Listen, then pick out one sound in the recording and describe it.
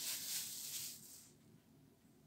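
A plastic bag rustles loudly.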